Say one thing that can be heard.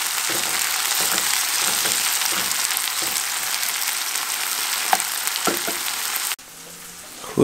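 Food sizzles loudly in a hot frying pan.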